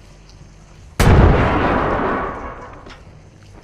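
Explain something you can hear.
A gun fires a single loud blast that rumbles and slowly fades.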